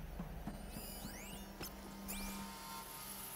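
Electronic chirps sweep upward in quick bursts.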